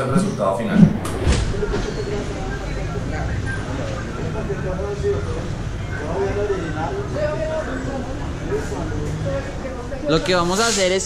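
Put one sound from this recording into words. Rubber squeaks and rustles as a tyre is worked onto a wheel.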